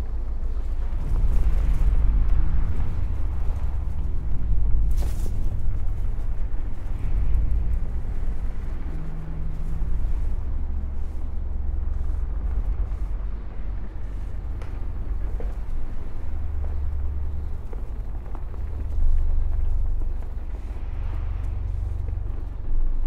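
Huge hovering machines give off a deep, steady rumbling hum.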